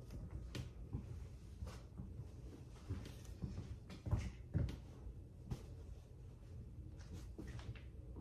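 Soft thuds and knocks sound close by.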